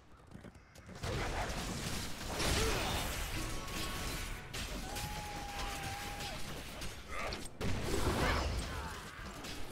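Game spells and weapons crackle and clash in a busy fight.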